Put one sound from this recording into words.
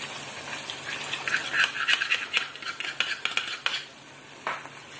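A thick liquid pours and splashes into a frying pan.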